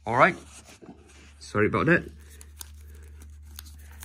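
A plastic cassette case clicks as it is handled.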